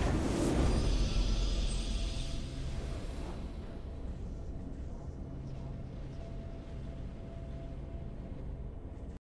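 A triumphant fanfare plays and fades.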